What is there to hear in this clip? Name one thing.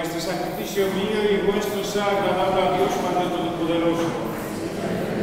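A small group of men sings together in an echoing hall.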